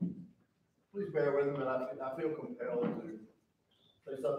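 A man speaks calmly from the front of a large hall.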